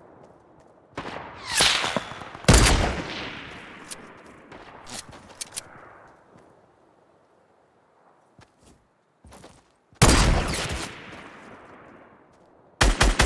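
A sniper rifle fires a loud, echoing shot.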